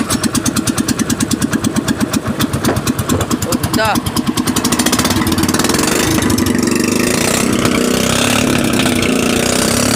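A small motor engine chugs loudly, then revs up into a faster, steady drone.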